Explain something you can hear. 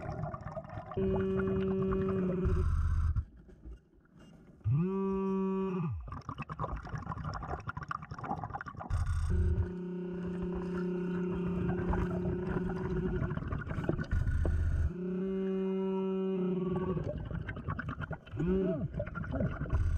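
A metal detector gives out long, steady beeps.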